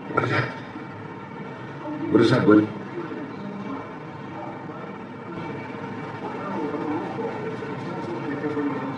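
A chimpanzee taps its fingers on aquarium glass.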